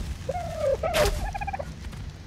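An arrow is loosed from a bow with a sharp twang.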